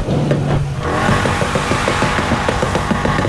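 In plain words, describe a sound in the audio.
A car exhaust pops and crackles in rapid bursts.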